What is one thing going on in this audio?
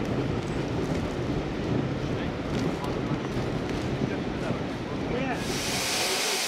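Train carriages rumble and clatter past close by.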